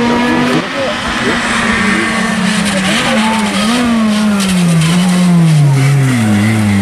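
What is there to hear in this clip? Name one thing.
A rally car's engine roars loudly as it speeds closer, its pitch rising and falling with gear changes.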